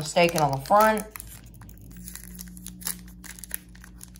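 A foil wrapper tears open.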